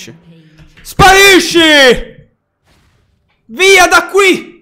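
A young man shouts loudly and excitedly close to a microphone.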